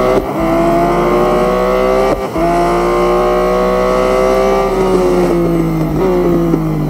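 A racing car engine roars at high revs, climbing in pitch and dropping briefly with each gear change.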